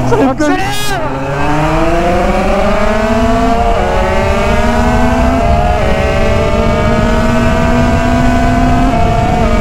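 A motorcycle engine accelerates, its pitch rising through the gears.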